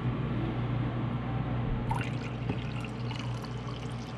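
Coffee pours into a mug.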